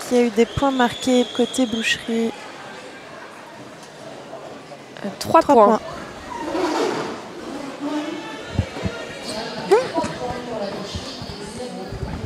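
Roller skate wheels rumble across a wooden floor in a large echoing hall.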